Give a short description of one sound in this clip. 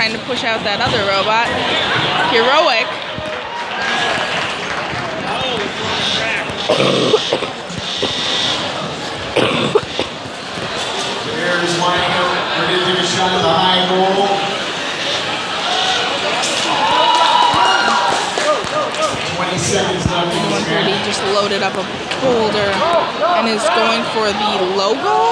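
A crowd of people chatters and calls out in a large echoing hall.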